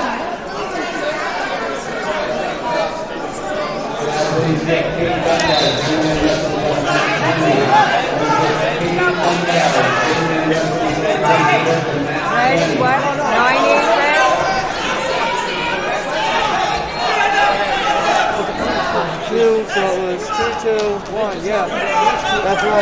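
A crowd of people chatter and call out in a large echoing hall.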